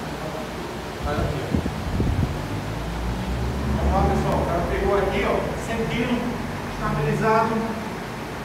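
A man talks calmly nearby, explaining.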